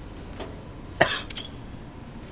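A metal desk drawer clanks open.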